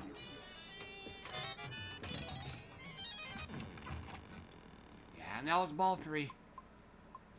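A pinball machine rings and chimes with electronic game sounds.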